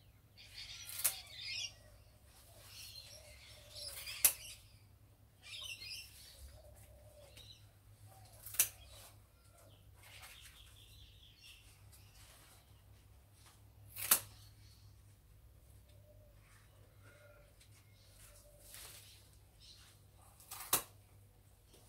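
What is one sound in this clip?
Branches snap with sharp cracks.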